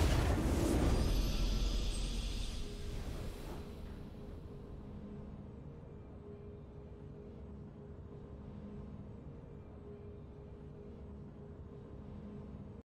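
A triumphant music sting swells and then fades to a soft hum.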